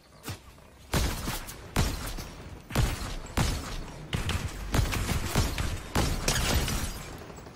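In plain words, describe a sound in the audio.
Gunshots crack one after another.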